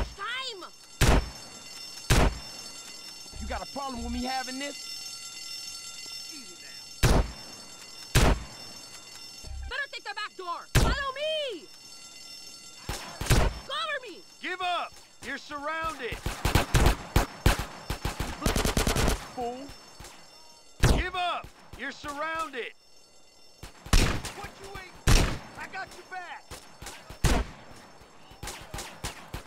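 Shotgun blasts boom one at a time.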